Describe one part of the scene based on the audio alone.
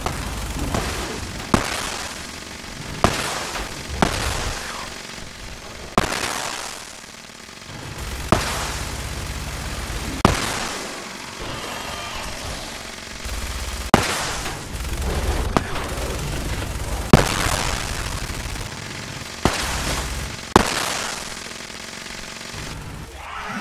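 Explosions rumble and crackle between the shots.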